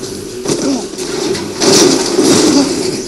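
A car crashes down with a loud thud through loudspeakers.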